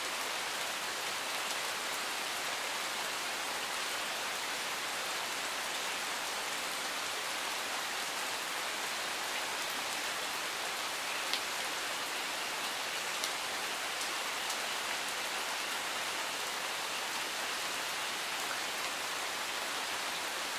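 A stream rushes steadily over rocks nearby.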